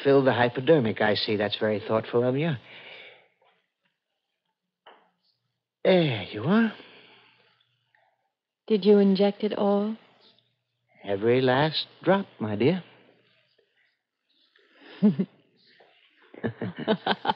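A woman speaks with strong emotion through an old radio microphone, in short bursts with pauses.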